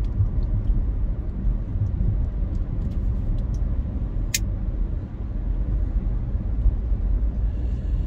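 A car's engine and road noise rumble steadily from inside the car.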